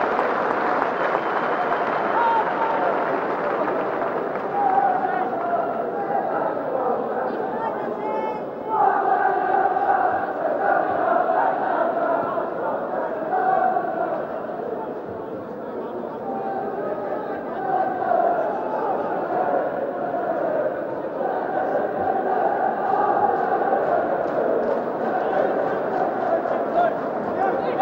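A large crowd murmurs and cheers in an open stadium.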